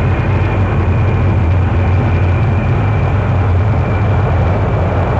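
A jet airliner's engines roar and whine steadily as it taxis close by.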